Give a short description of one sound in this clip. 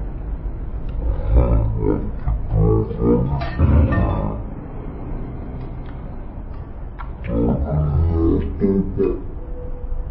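A young man groans and cries out loudly up close.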